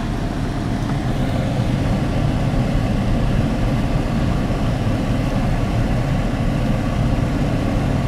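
Tyres rumble over a dirt road.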